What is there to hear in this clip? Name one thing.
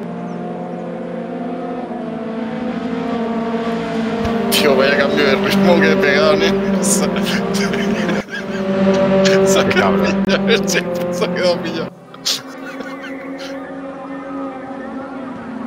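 Racing car engines roar at high revs.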